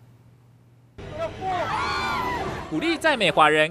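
A woman cries out loudly.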